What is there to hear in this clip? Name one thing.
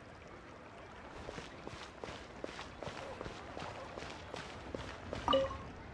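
Quick footsteps run across stone paving.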